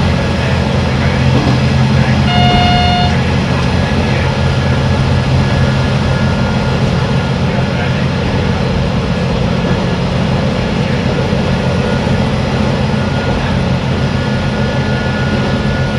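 A train rumbles steadily through a tunnel.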